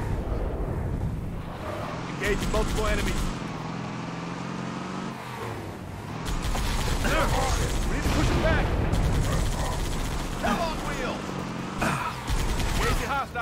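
A mounted machine gun fires rapid bursts.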